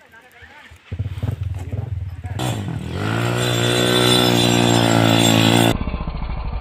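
A dirt bike engine approaches, revving louder.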